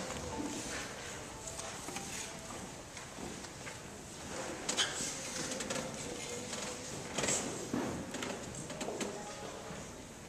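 A string ensemble plays softly.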